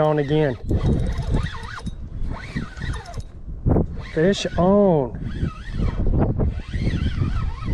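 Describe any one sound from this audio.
A fishing reel clicks as its handle turns.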